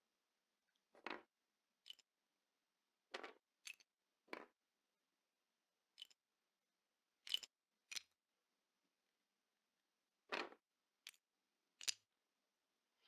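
Small pieces click sharply into place, again and again.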